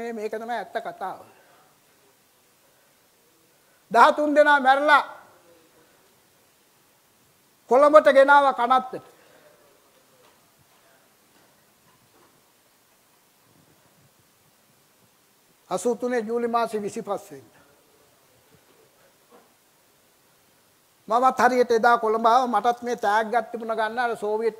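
An elderly man speaks with animation through a microphone, in bursts with long pauses.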